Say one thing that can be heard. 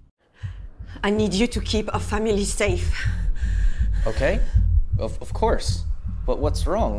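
A young woman speaks urgently and tearfully through an online call.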